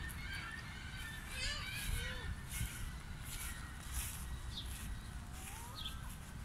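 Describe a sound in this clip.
Footsteps swish through short grass.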